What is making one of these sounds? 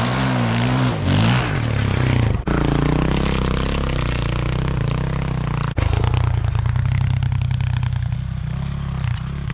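A dirt bike engine revs and roars close by.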